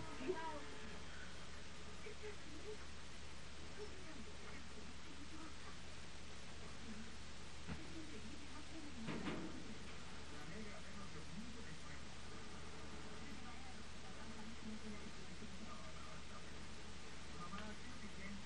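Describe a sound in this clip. A man talks quietly nearby.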